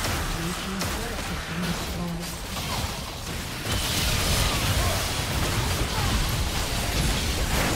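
Spell effects crackle and burst in a fast fight.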